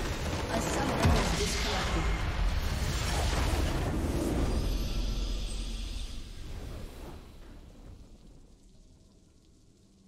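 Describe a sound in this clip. A large crystal structure bursts with a deep boom, and the din slowly fades away.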